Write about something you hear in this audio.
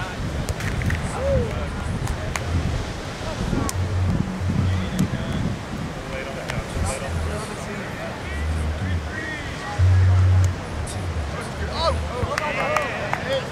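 Waves break and wash onto the shore nearby.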